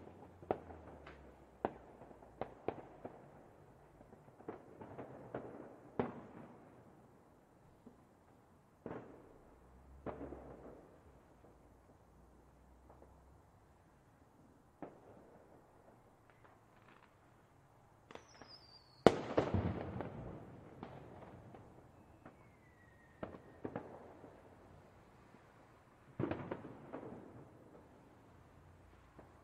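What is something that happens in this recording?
Fireworks burst and crackle in the distance.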